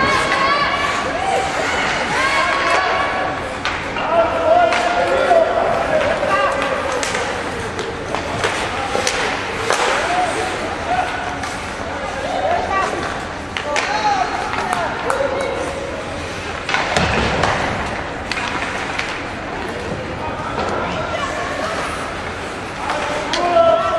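A crowd of spectators shouts and cheers in a large echoing arena.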